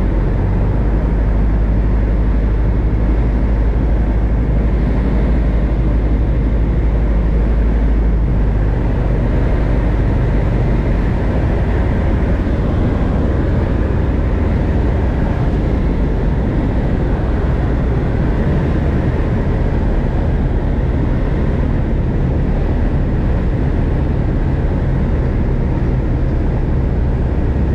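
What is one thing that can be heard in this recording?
A small propeller plane's engine drones loudly and steadily from inside the cockpit.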